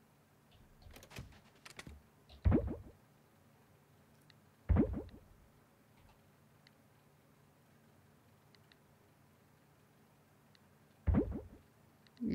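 Short game menu clicks sound as items are moved.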